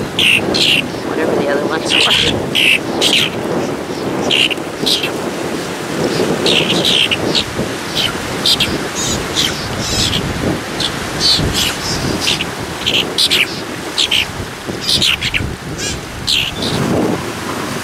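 Small waves wash gently over rocks nearby.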